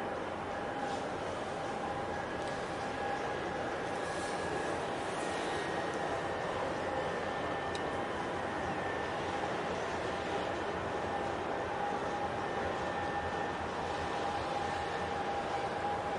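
A large ship's engine hums low and steady across open water.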